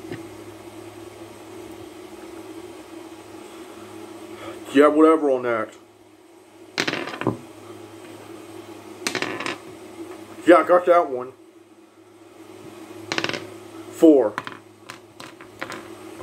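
Small plastic toy figures click as they are set down.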